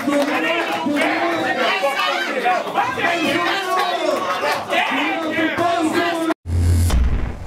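A crowd of men shouts and cheers nearby.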